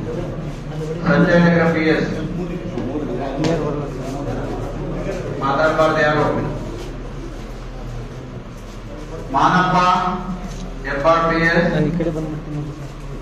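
A man speaks loudly through a microphone in short bursts.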